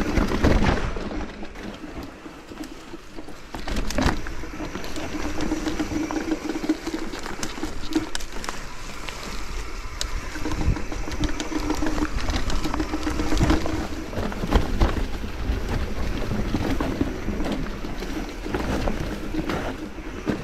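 A bicycle rattles and clatters over bumps.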